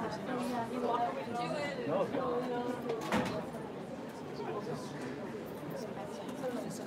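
A large audience chatters and murmurs in an echoing hall.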